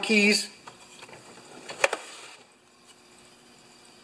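A metal drawer slides open on its runners.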